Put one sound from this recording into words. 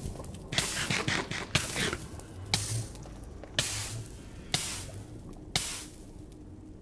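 Fire roars and crackles in loud bursts.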